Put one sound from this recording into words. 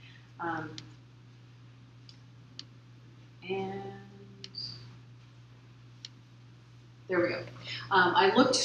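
A woman speaks into a microphone, giving a talk with pauses.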